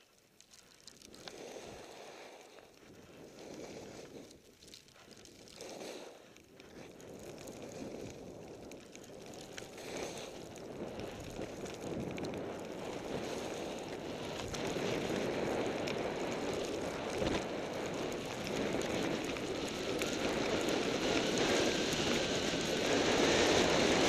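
Wind rushes past the microphone, growing louder and stronger.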